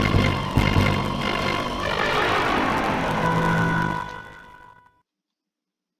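Game music plays loudly, then fades out.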